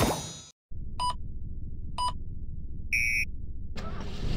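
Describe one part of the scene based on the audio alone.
Short electronic beeps count down to the start of a race.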